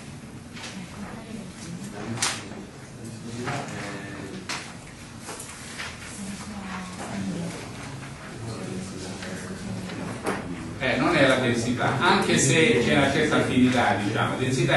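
An elderly man lectures calmly, heard from across the room.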